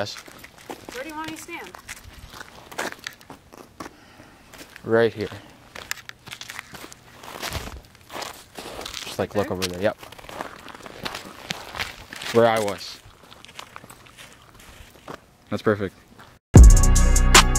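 Footsteps crunch on icy snow.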